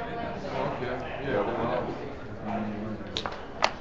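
Checkers click as they are moved on a wooden board.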